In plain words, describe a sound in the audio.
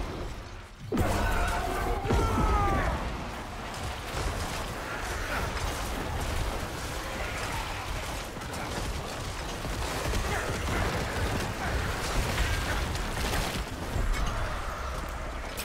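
Game battle sounds of blows and explosions clash loudly.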